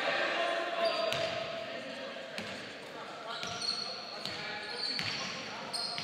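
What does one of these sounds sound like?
A basketball bounces repeatedly on a wooden floor in an echoing hall.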